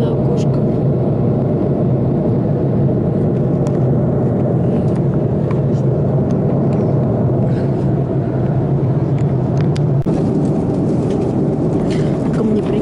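A jet airliner's engines roar steadily, heard from inside the cabin.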